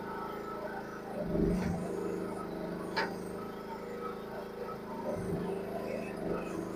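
A small excavator's diesel engine runs steadily close by.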